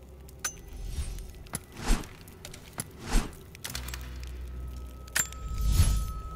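Short menu clicks sound.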